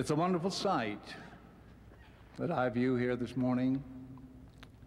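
An elderly man speaks slowly and deliberately into a microphone.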